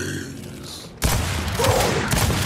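A gun fires in loud bursts.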